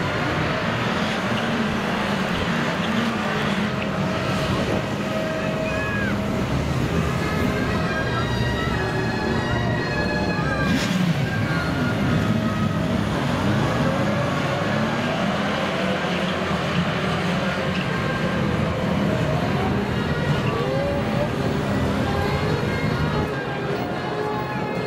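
Motorcycle engines rumble and rev as a group of motorcycles rides past in formation.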